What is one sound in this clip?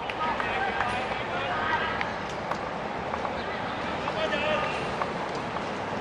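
Young players shout across an open pitch.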